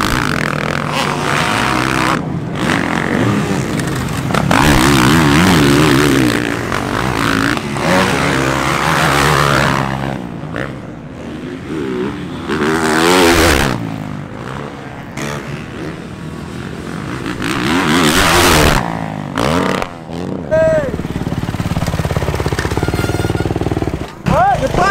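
Dirt bike engines rev and roar loudly.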